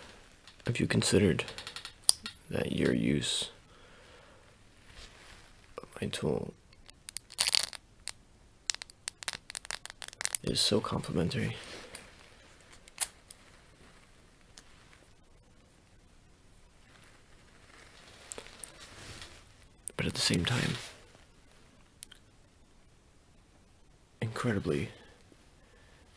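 A young man speaks softly and close to the microphone.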